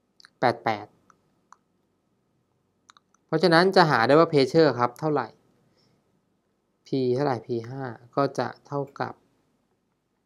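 A young man explains calmly and close up, pausing between phrases.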